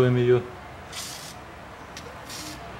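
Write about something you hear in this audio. An aerosol can sprays with a short hiss.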